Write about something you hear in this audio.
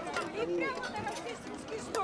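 An elderly woman calls out.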